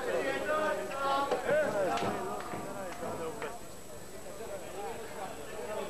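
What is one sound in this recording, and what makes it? Men talk close by in a crowd.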